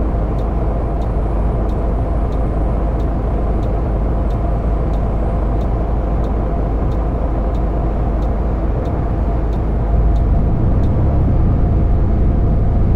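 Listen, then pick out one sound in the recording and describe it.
A bus engine hums steadily and grows louder near the end.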